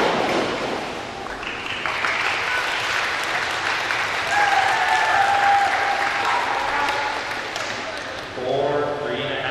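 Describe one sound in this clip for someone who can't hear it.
A crowd cheers and claps in a large echoing hall.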